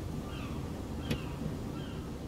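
A car's front lid pops open with a sharp click.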